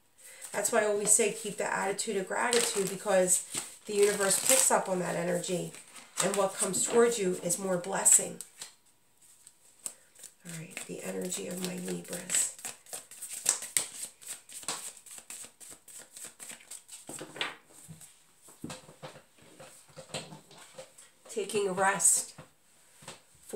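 A deck of cards is shuffled with quick riffling clicks.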